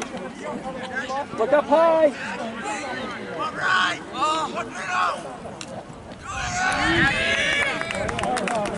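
People shout and cheer from the sidelines outdoors.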